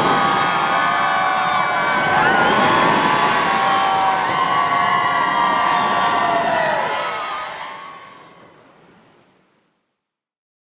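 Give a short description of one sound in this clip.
A large crowd of young people cheers and screams loudly outdoors, then fades away.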